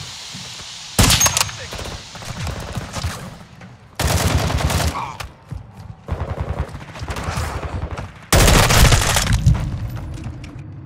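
Gunfire cracks in bursts.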